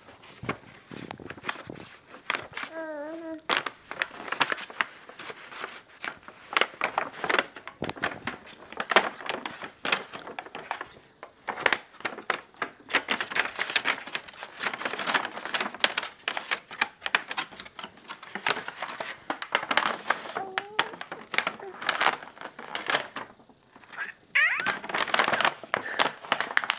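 A paper map crackles and rustles as it is handled.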